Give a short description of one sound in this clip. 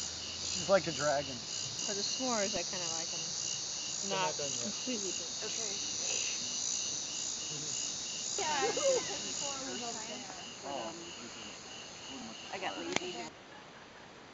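Young men and women chat and laugh close by.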